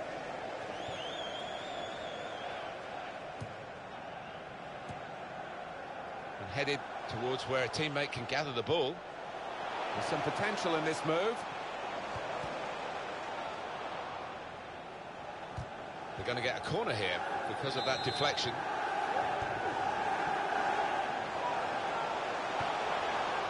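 A stadium crowd roars and chants steadily.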